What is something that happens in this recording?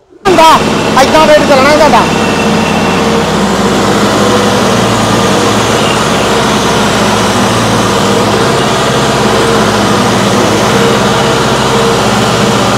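A tractor engine runs with a steady low rumble close by.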